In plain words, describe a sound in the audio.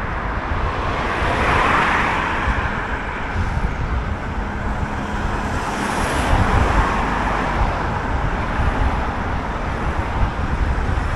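Cars drive past on a nearby road, swelling and fading.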